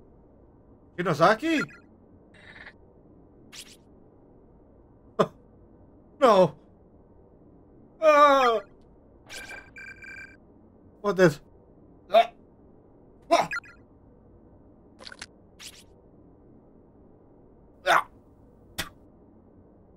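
A young man speaks in short, animated bursts close to a microphone.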